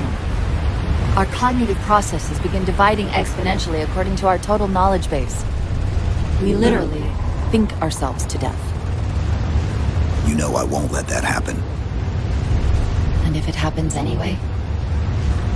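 A young woman speaks calmly over a radio.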